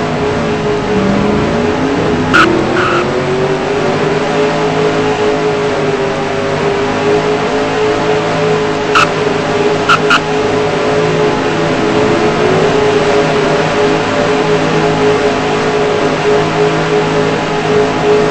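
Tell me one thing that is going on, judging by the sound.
A race car engine roars steadily at high speed, its pitch rising at first.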